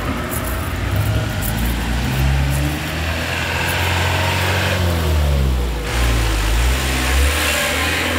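A truck engine rumbles loudly as it drives past.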